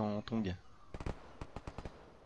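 A rifle fires a loud shot close by.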